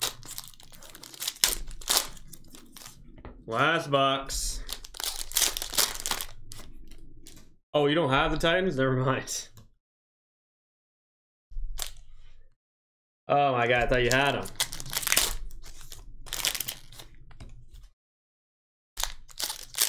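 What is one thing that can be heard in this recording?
Foil card packs crinkle and rustle as hands tear them open.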